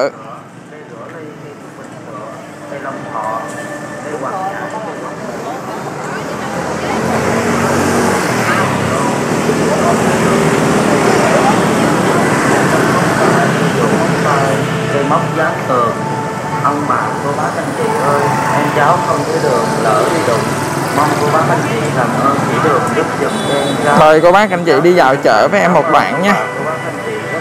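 Motorbike engines hum and buzz past on a busy street.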